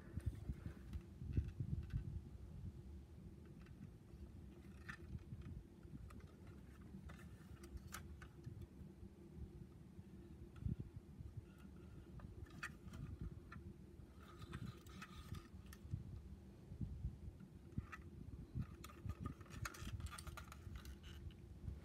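Fingers handle and click against a small plastic model car.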